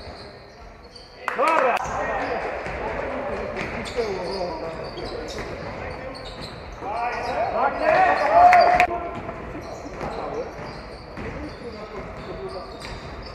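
A basketball thumps on a wooden floor.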